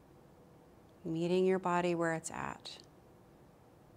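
A young woman speaks calmly and softly into a nearby microphone.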